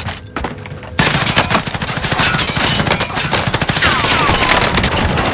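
A gun fires rapid bursts, echoing in a large hall.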